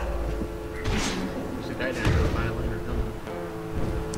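Swords clash and swish in a fight.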